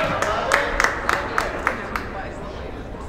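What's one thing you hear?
A ball bounces on a hard floor in an echoing gym.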